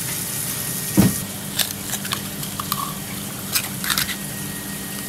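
A knife clicks against a clam shell.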